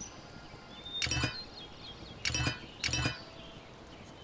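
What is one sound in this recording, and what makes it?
Short game menu chimes ring out as points are spent.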